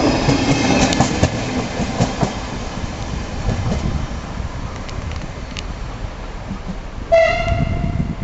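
A train rolls away, its wheels rumbling and clattering on the rails as it fades.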